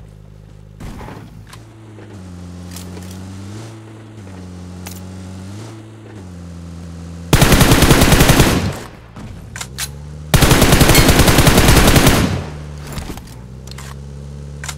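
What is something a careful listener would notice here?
A car engine hums and revs as it drives over rough ground.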